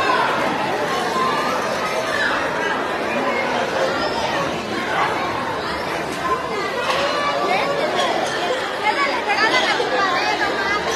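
A crowd of children and adults chatters and shouts excitedly close by.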